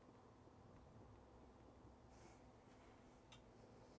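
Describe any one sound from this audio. A small push button clicks under a finger.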